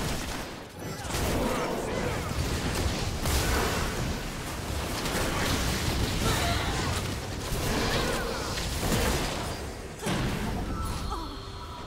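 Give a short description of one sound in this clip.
Spell effects whoosh and crackle in a game fight.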